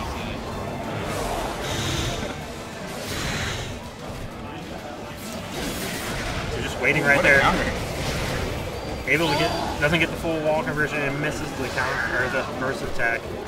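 Game battle effects whoosh and crash loudly.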